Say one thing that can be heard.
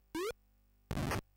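A retro video game gives a quick rising electronic beep.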